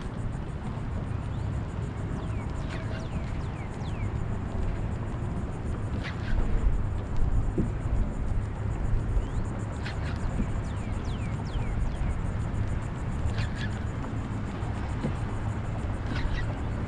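A fishing reel whirs as its handle is cranked.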